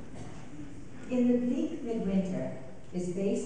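A woman speaks through a microphone and loudspeakers.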